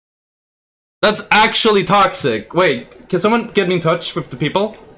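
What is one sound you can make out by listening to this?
A young man talks quickly and with animation into a microphone.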